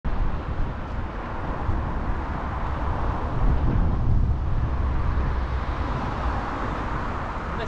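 Bicycle tyres hum along a smooth path.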